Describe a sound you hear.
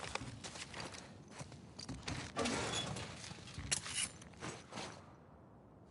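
A metal drawer slides open and shut.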